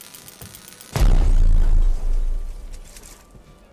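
A fiery blast bursts and crackles.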